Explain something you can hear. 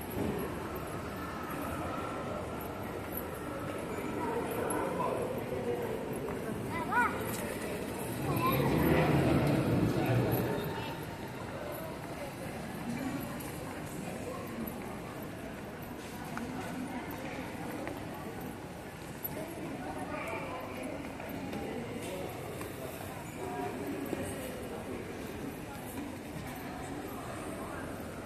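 Indistinct voices murmur in a large, echoing hall.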